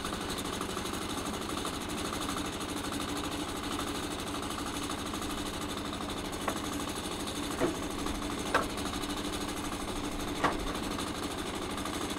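A sawmill engine runs with a steady hum outdoors.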